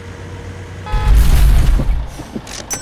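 A vehicle crashes with a loud thud.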